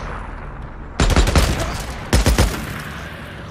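A rifle fires in quick bursts of loud shots.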